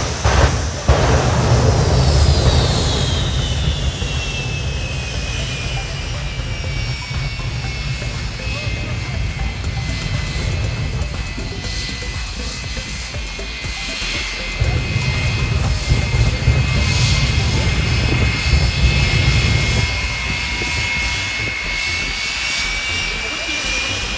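A jet engine roars loudly with a high whine that drops in pitch and holds.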